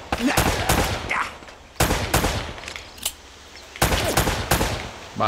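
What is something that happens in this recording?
Pistol shots ring out in quick bursts, echoing outdoors.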